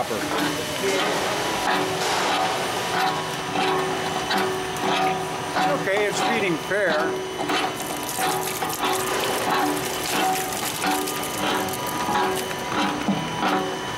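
A shredding machine hums and whirs steadily.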